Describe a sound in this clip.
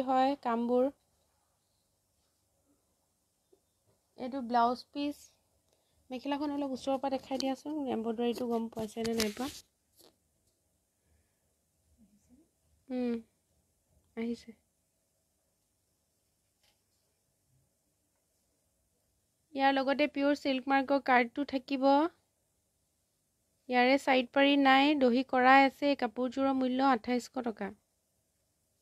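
A young woman talks with animation close to a microphone, in short bursts with pauses.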